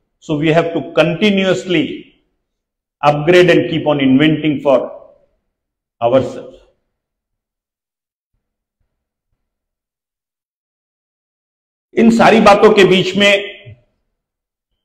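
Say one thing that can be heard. A middle-aged man speaks calmly into a microphone, heard through loudspeakers, with long pauses.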